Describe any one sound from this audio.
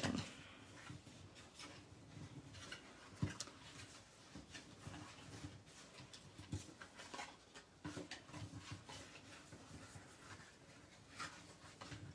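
Paper crinkles and rustles as it is folded by hand.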